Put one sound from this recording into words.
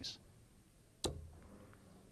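A dart thuds into a dartboard.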